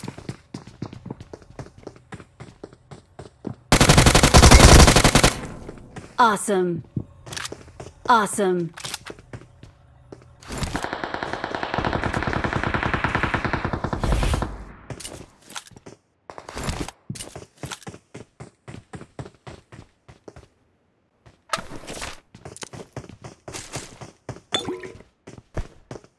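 Footsteps patter quickly.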